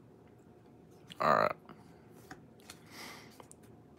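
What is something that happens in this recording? Cards slide and shuffle against each other.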